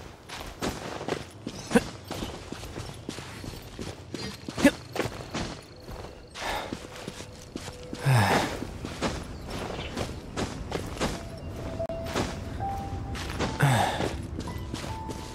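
Hands and boots scrape and thump against rock while climbing.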